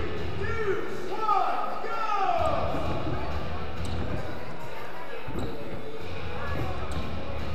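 Men shout encouragement in a large echoing hall.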